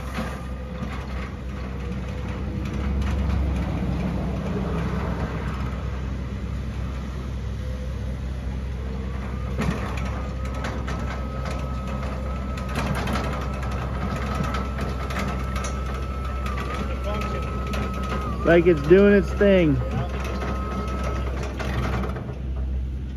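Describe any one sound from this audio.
Hard tyres roll over pavement.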